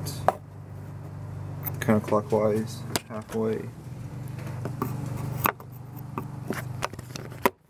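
A screwdriver scrapes and clicks against metal.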